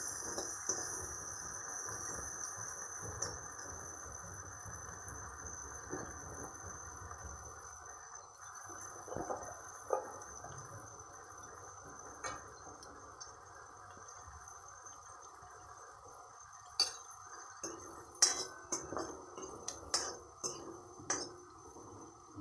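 Peas rustle as a hand stirs them in a pan.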